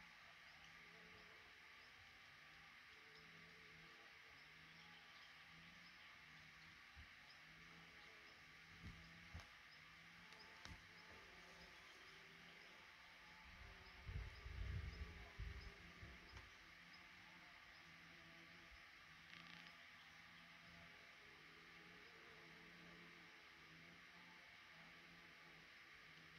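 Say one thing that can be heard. Nestling birds cheep faintly and softly.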